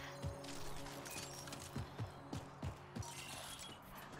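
Footsteps thud on the ground.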